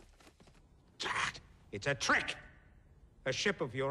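An elderly man speaks loudly and forcefully.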